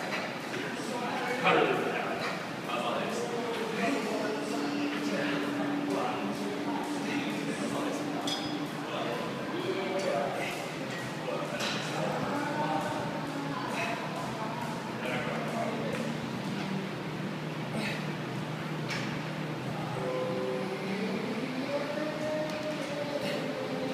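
Metal weight plates clank as a leg machine is worked.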